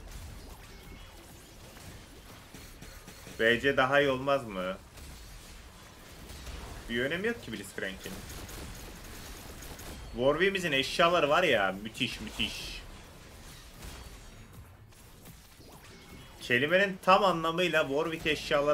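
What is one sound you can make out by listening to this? Magical spell effects whoosh and crackle during a battle.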